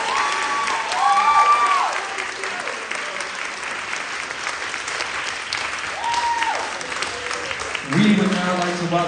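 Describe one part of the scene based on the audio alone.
A crowd cheers and whistles loudly in a large hall.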